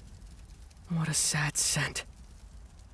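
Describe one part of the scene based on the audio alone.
A young man speaks softly and sadly, close up.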